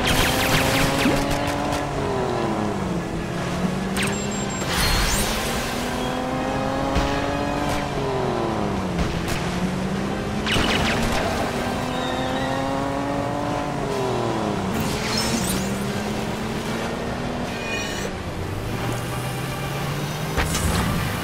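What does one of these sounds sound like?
Water splashes and sprays behind a speeding boat.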